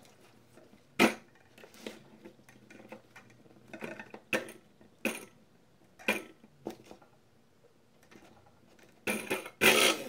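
Small plastic clicks and taps sound close by.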